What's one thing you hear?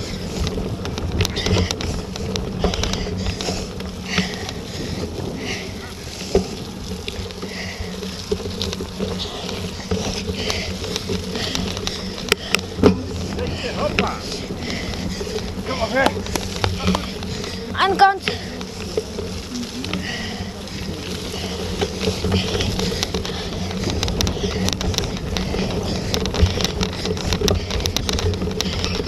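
Bicycle tyres roll and rattle over bumpy muddy ground.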